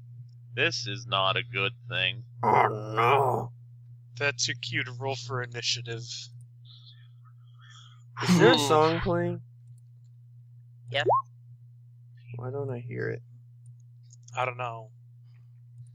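Several young men talk and laugh with animation over an online call.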